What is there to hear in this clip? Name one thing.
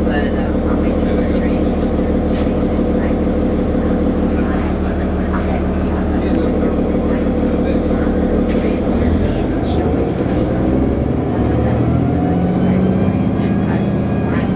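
A vehicle engine hums steadily from inside, shifting pitch as it speeds up.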